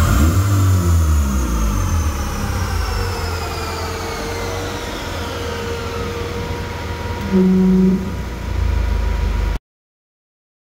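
A car engine revs high on a rolling road and then winds down.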